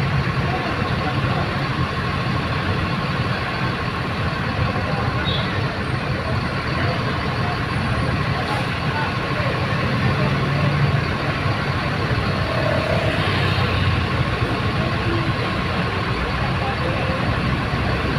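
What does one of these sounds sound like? Bus engines idle with a steady low rumble outdoors.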